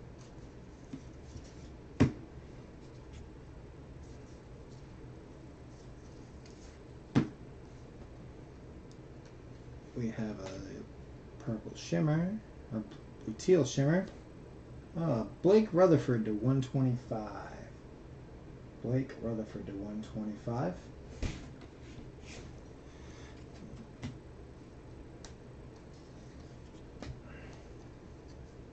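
Stiff trading cards rustle and flick as hands shuffle through them.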